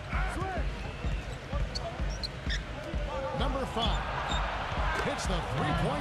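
A basketball bounces on a wooden court in a steady rhythm.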